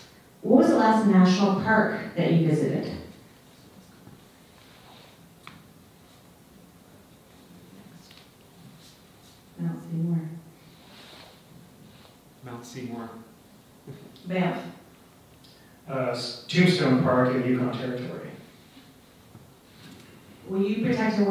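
A woman speaks calmly through a microphone, pausing between phrases.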